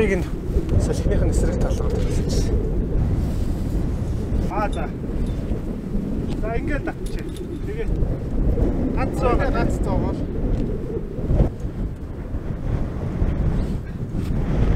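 Strong wind blows steadily outdoors.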